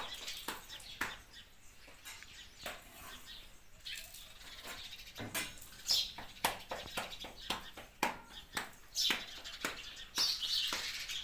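Hands slap and pat dough in rhythmic claps.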